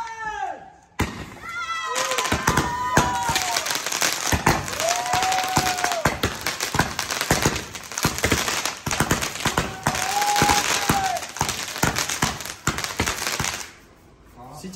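Fireworks fountains hiss and crackle loudly with rapid pops.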